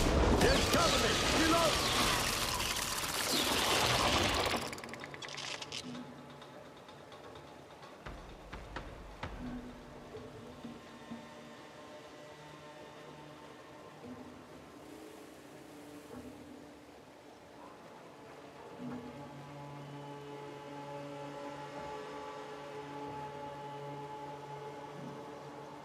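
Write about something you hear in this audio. A monster growls and snarls close by.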